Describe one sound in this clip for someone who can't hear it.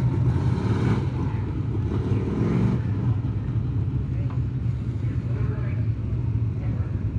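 Race car engines roar steadily around a dirt track outdoors.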